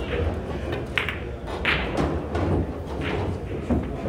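Pool balls knock together and roll across the table.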